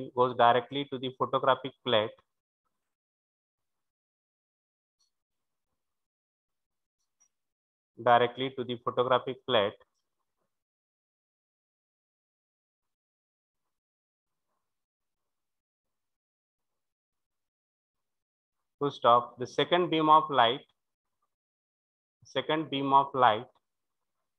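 A man speaks calmly into a close microphone, in short bursts with long pauses.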